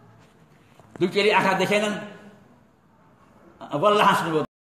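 An elderly man speaks close by with animation.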